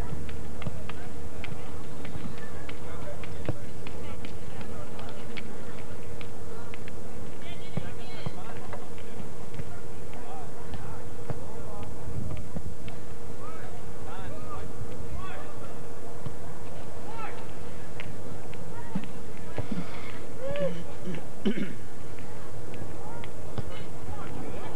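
Distant men call out across an open field outdoors.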